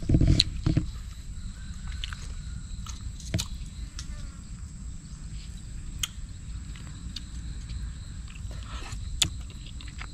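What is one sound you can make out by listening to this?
Chopsticks tap against a bowl.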